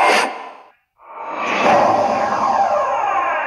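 A swirling magic spell whooshes and shimmers.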